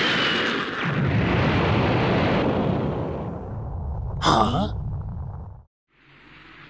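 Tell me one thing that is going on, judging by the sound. A loud explosion rumbles and roars, then fades.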